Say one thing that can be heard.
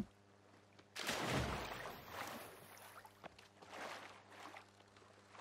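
Water splashes and sloshes as someone wades in.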